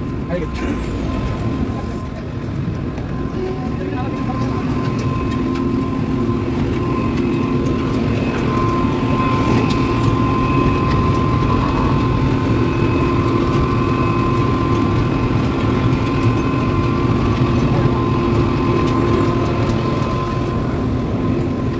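Heavy industrial machinery drones steadily nearby.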